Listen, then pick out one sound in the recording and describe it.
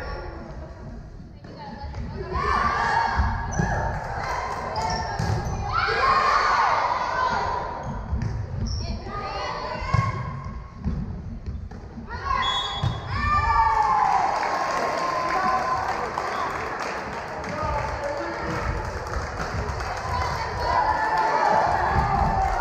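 Young girls shout and call out to each other in a large echoing gym.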